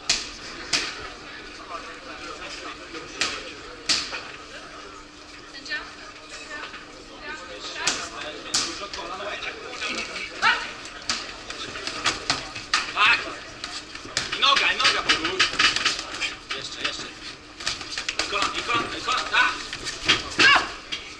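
Padded gloves thump against bodies and gloves in sharp bursts.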